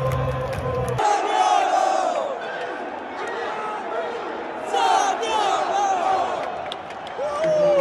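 A young man sings along loudly close by.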